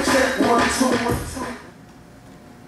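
Upbeat music plays through a loudspeaker and then stops.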